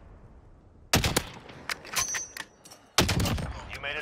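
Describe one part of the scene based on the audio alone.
A rifle fires loud sharp shots.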